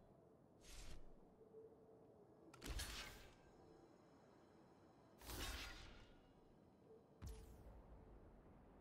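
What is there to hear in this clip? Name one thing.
Short digital whooshes and thuds sound in bursts.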